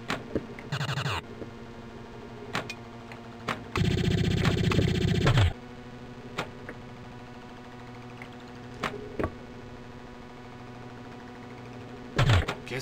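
Pinball flippers click sharply now and then.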